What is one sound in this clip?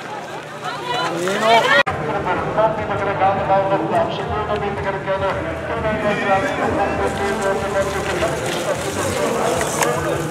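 Bicycle tyres squelch through mud.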